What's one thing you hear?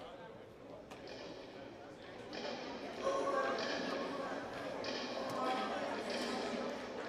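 Young women chant and cheer together loudly in a large echoing gym.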